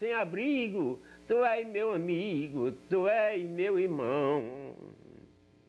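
An elderly man speaks with feeling close to a microphone.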